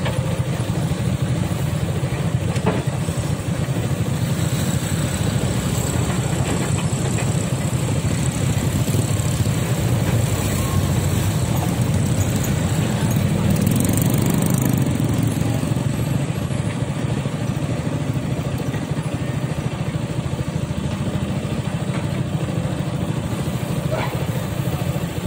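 Water rushes over rocks.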